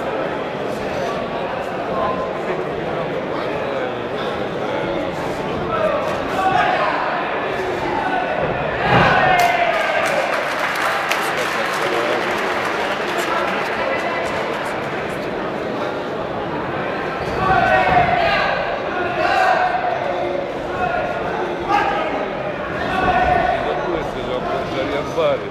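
Gloves and kicks thud on bodies.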